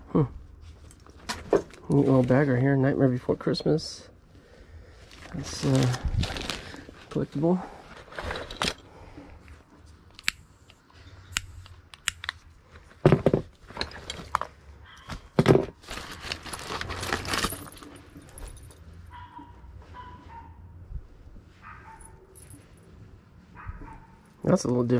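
A nylon bag rustles as hands rummage through it.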